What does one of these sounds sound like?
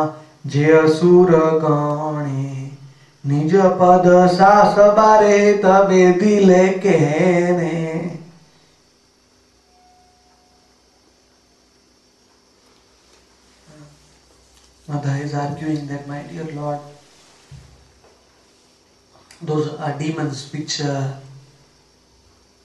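A man chants slowly and steadily into a close microphone.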